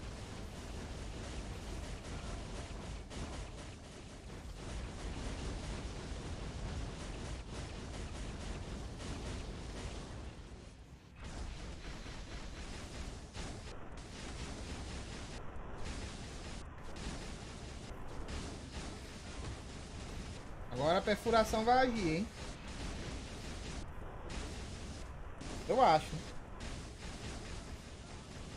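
Game sound effects of blasts and magic bursts play throughout.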